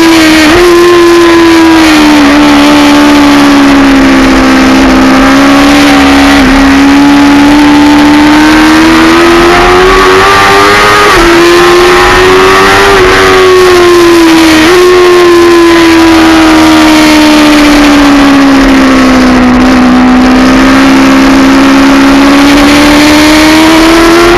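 A motorcycle engine roars loudly close by, its pitch rising and falling with each gear shift.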